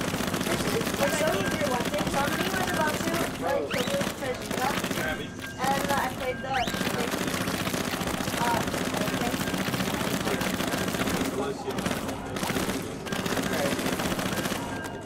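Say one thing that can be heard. Young men talk with animation nearby.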